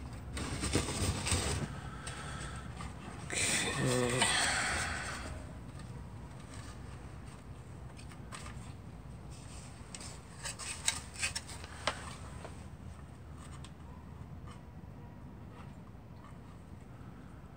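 Plastic and metal parts rattle and clatter as hands handle a small device.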